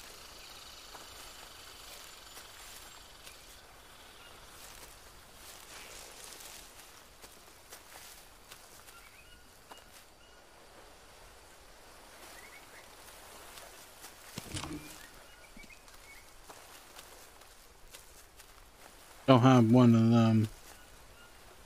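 Footsteps crunch softly on a forest floor.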